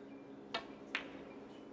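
Two snooker balls knock together with a crisp click.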